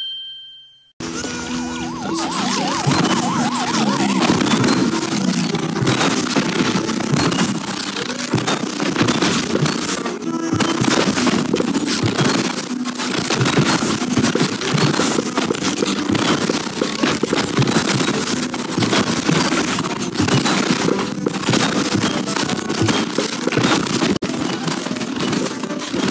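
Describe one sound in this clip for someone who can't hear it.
Game plants fire rapid popping shots in a dense, nonstop barrage.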